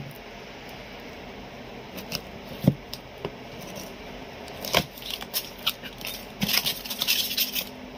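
Cardboard rustles and scrapes as a parcel is handled and opened.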